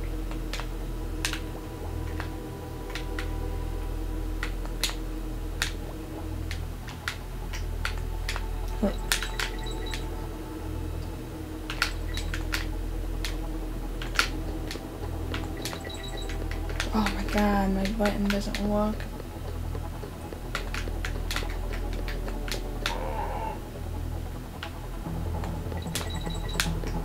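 Game music plays steadily with a low beat.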